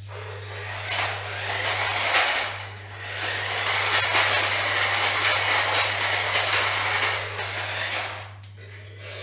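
Plastic toy parts clatter and click as they shift.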